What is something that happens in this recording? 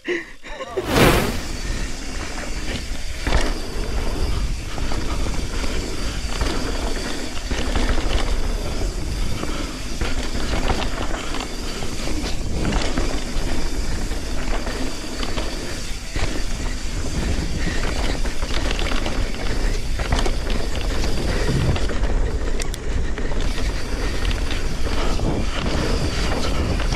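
Bicycle tyres rumble and crunch steadily over a dirt trail.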